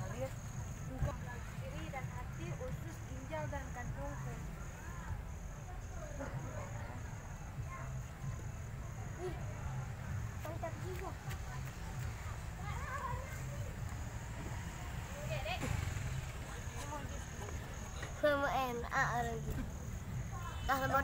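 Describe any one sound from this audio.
Children chatter and talk excitedly nearby.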